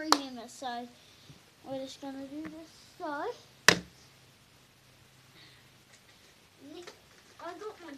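A young boy talks and sings playfully close by.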